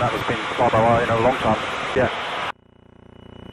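A man talks over a headset intercom, close and muffled by engine noise.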